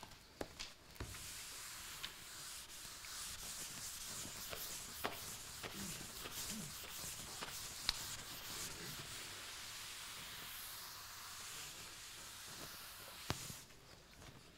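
A felt eraser rubs steadily across a chalkboard.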